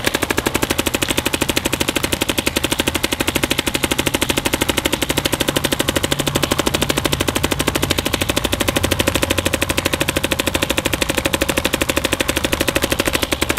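A paintball marker fires in a rapid, steady stream of sharp pops.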